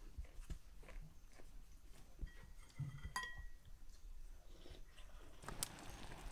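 Spoons clink against bowls as people eat.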